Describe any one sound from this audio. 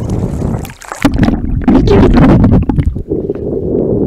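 Water gurgles and rumbles as a wave washes over close up.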